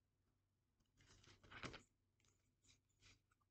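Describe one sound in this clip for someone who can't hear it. Cards tap and slide on a wooden table.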